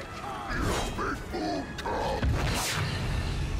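A sword clashes and strikes in a fight.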